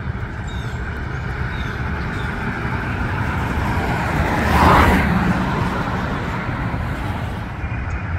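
A classic sedan drives past on asphalt.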